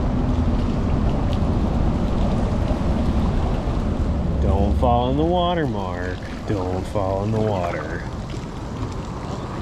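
A paddle dips and splashes in calm water.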